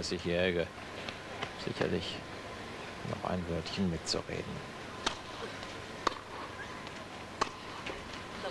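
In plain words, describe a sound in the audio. A tennis ball is struck sharply by rackets back and forth in a large hall.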